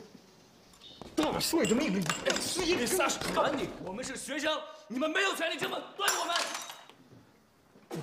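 A young man shouts angrily in protest.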